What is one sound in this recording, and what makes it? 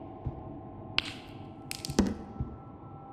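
A small plastic stick clatters onto a hard floor.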